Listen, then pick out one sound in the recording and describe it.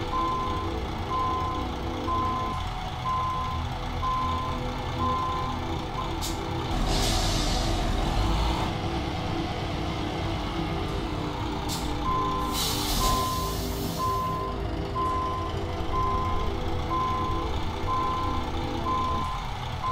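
A truck engine rumbles steadily at low revs.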